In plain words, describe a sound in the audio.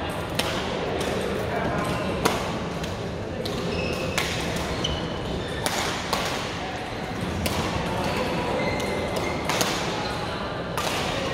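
Shuttlecocks are struck with rackets, sharp pops echoing in a large hall.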